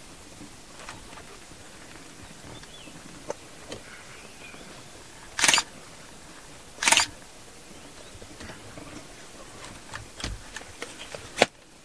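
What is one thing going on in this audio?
An elephant's heavy footsteps crunch through dry grass.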